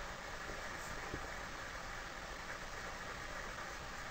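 A young boy talks quietly close by.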